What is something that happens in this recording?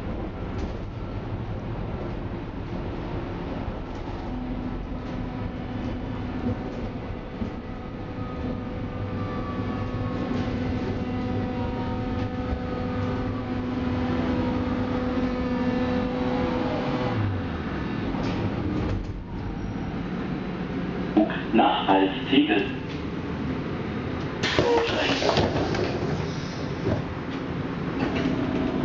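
A train rumbles and rattles along the rails.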